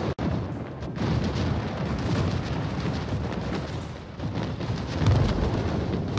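Heavy naval guns boom and explosions rumble in a deep, continuous roar.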